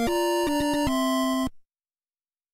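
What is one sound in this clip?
A cheerful electronic game jingle plays a few bright notes and stops.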